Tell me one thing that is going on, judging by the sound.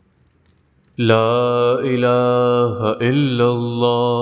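A young man chants in a slow, melodic voice.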